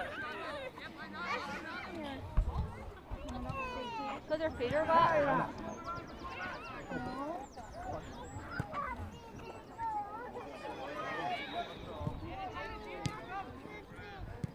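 Young players shout and call out across an open pitch outdoors.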